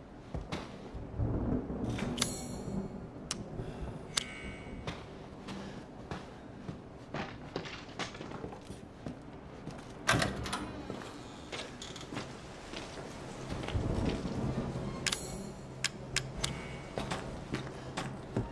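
Footsteps thud slowly on wooden floorboards.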